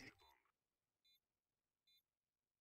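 A planted bomb beeps at a steady, slow pace.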